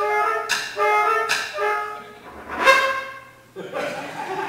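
A flute plays a quick melody in an echoing hall.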